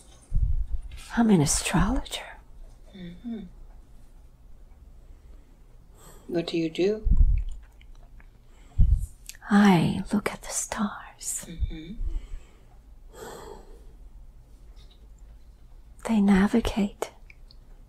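An elderly woman moans and groans in pain, close by.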